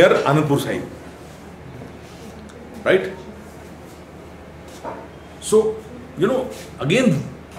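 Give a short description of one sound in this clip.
A man speaks slowly and calmly, with pauses between phrases.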